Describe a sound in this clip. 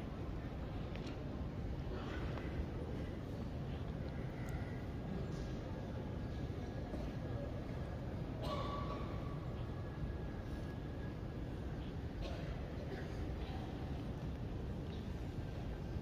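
A crowd of people murmurs softly in a large echoing hall.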